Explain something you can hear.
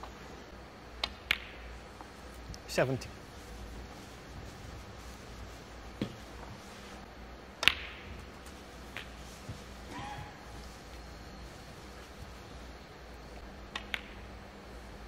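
Snooker balls click sharply against each other.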